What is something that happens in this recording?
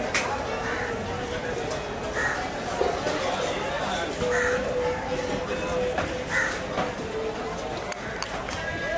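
A knife slices through a fish's skin on a wooden board.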